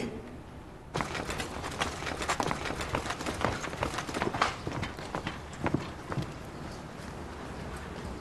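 Armoured soldiers' boots tramp and their gear clinks as they stride off.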